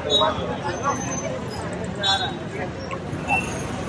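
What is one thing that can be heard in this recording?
A crowd of people chatter outdoors on a busy street.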